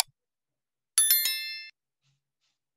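A bell chimes brightly and briefly.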